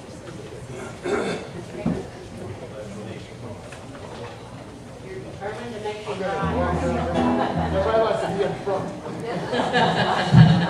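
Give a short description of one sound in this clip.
A group of elderly women talk and laugh together nearby.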